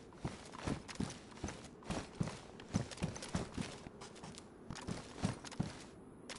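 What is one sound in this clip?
Footsteps crunch steadily on a gritty hard floor.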